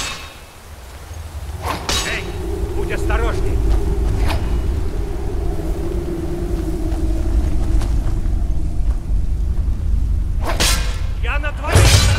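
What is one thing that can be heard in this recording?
A fire crackles in a brazier.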